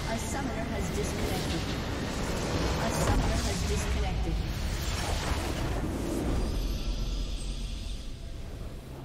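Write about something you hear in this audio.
A loud explosion rumbles and crashes, then fades.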